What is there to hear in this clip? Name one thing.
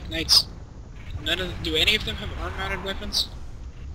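Laser weapons fire with sharp zaps.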